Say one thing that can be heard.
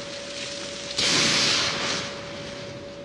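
A fireball bursts with a loud roar.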